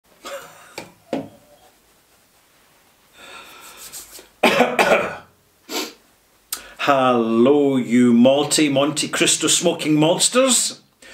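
A middle-aged man speaks calmly and expressively into a nearby microphone.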